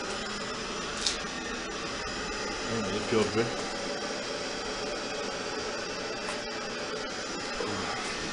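A television hisses with steady static.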